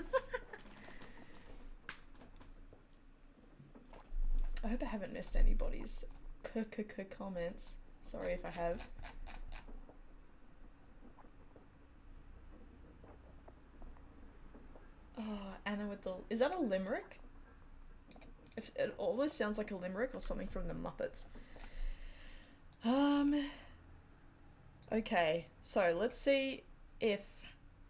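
A woman talks casually into a close microphone, pausing now and then.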